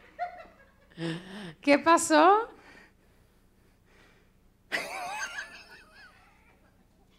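A young woman laughs through a microphone.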